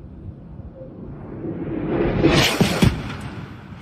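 A missile roars in fast, growing louder.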